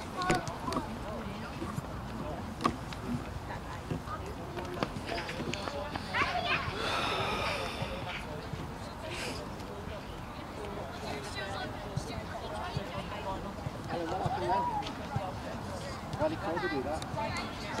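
Players call out to each other across an outdoor pitch, heard from a distance.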